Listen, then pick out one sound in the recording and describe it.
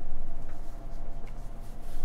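Keys clack on a mechanical keyboard.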